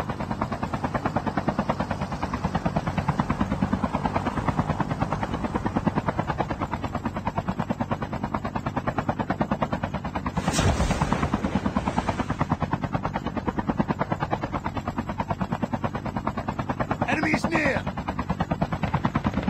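A zipline cable whirs steadily as a rider slides along it.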